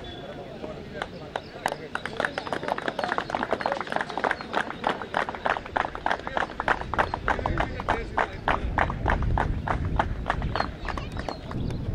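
A group of young men clap their hands in a quick, steady rhythm.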